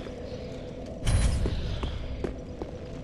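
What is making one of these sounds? A deep magical whoosh rumbles up.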